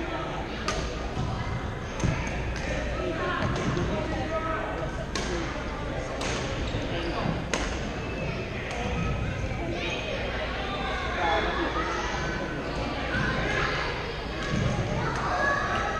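Many people chatter and call out in a large echoing hall.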